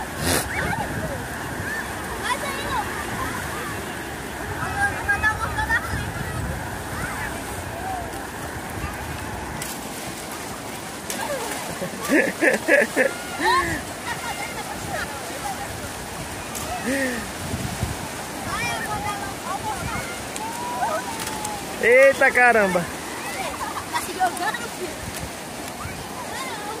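Small waves break and wash onto a beach.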